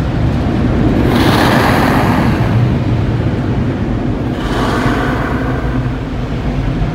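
Powerful air blowers roar over a car.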